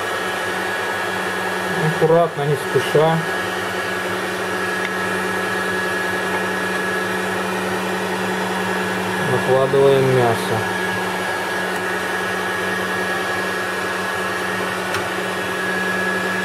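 An electric meat grinder hums steadily.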